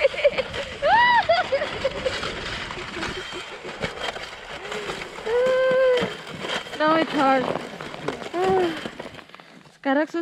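A sled scrapes and hisses over packed snow.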